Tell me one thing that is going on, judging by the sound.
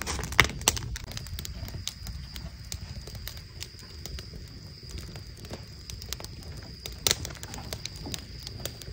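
Fingers tap and click lightly on a hard surface.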